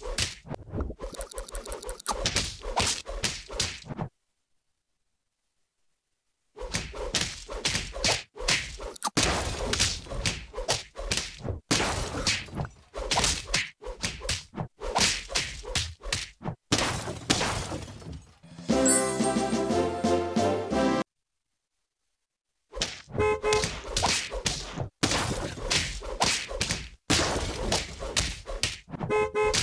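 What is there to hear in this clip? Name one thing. Cartoonish hits thump and pop in quick bursts.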